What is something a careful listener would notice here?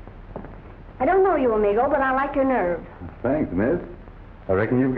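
A young woman speaks cheerfully, close by.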